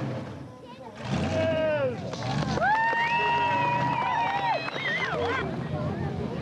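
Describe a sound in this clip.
Tyres screech on tarmac.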